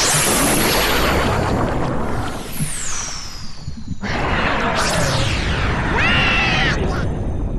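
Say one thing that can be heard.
Magical blasts whoosh and shimmer with sparkling effects.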